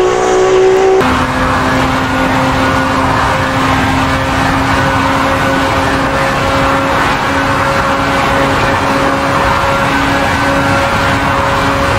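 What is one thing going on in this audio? A sports car engine roars steadily at high speed, echoing in a tunnel.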